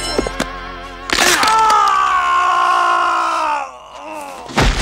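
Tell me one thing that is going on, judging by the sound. A man screams in pain.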